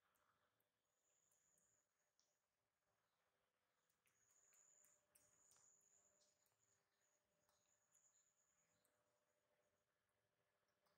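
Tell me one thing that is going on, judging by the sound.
A baby monkey squeaks and cries softly.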